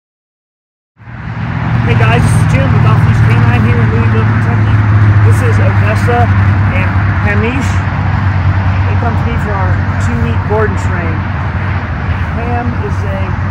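A man speaks calmly outdoors.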